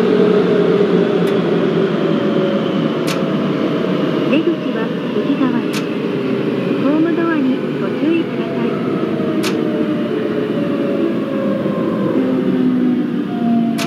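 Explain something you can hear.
An electric train motor whines, its pitch slowly falling as the train slows.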